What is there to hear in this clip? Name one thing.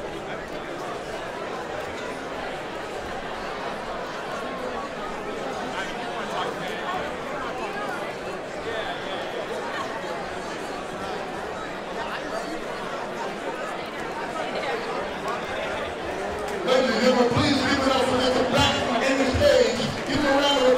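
A crowd of men talks and murmurs all around.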